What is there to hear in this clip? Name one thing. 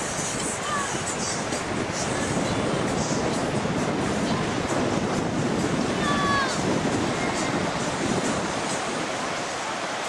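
Wind blows outdoors and rustles palm fronds.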